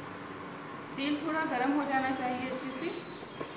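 A woman speaks close by, explaining.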